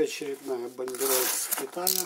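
Scissors snip through a paper envelope.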